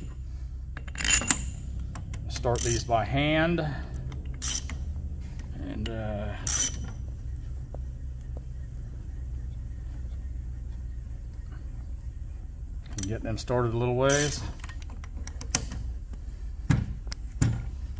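Metal tools clink against metal.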